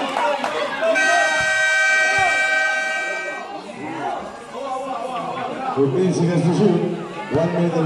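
A crowd of spectators chatters and cheers nearby, outdoors.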